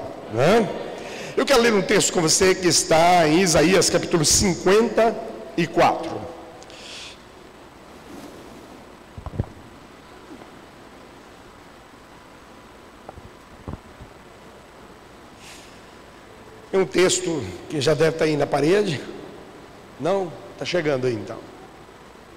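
An older man speaks with feeling through a microphone, pausing often.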